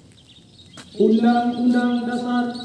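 A man speaks loudly through a microphone.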